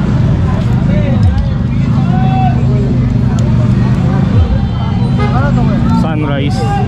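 People chatter in the background outdoors.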